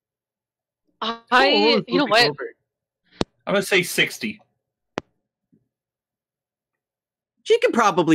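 Young men talk and laugh over an online call, heard through headset microphones.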